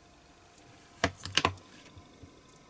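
Metal pliers click and clatter as they are set down.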